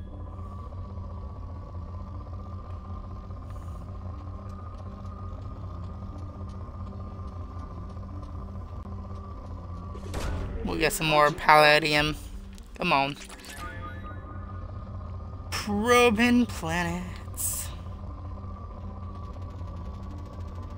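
A steady electronic hum drones from a game.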